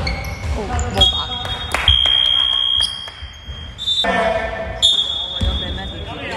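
A referee's whistle blows.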